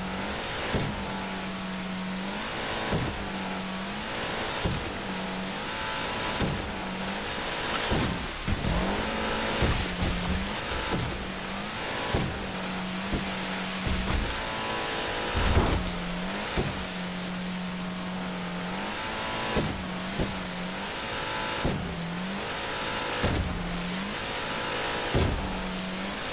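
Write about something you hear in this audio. A boat engine roars steadily.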